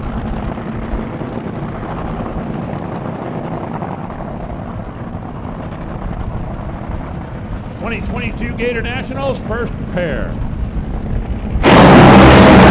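Dragster engines idle with a deep, rough rumble.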